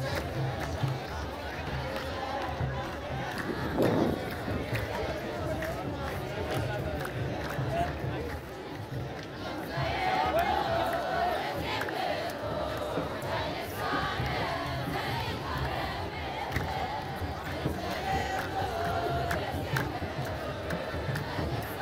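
A large outdoor crowd murmurs and chatters all around.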